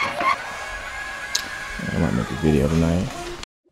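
A floor jack clicks as its handle is pumped.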